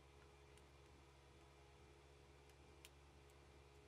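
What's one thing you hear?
A sewing machine hums steadily.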